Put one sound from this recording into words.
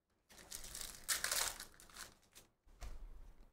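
A foil wrapper crinkles and tears as hands open a pack of cards.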